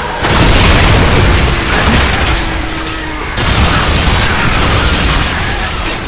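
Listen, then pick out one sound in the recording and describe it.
A rifle fires rapid bursts of gunfire.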